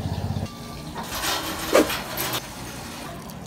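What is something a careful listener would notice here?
Water pours into a pot.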